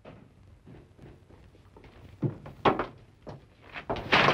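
Footsteps walk across a hard floor.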